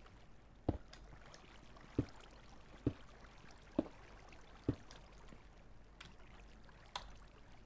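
A pickaxe chips at stone in short, regular knocks.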